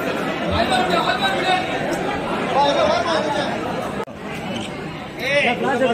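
A crowd of men and women talks and chants close by.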